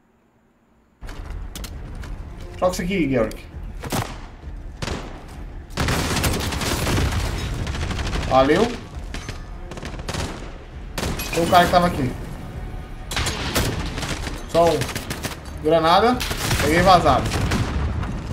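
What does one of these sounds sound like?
Gunfire crackles in a video game.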